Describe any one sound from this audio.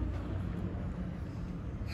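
Flip-flops slap on pavement as a woman walks.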